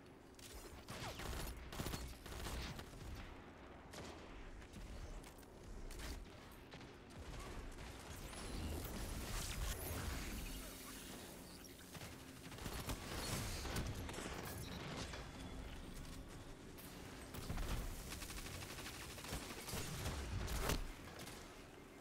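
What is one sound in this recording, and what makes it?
Rapid gunfire rattles and booms.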